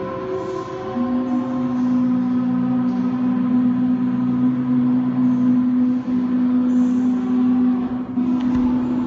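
A young woman sings a long, steady note through a microphone.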